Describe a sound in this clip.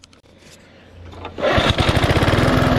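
A lawn mower engine starts with a pull of its cord.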